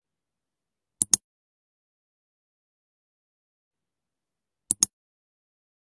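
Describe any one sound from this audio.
A sharp double click sounds twice.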